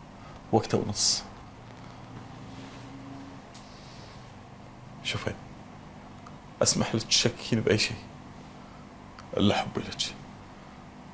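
A man speaks weakly and hoarsely, close by, in short halting phrases.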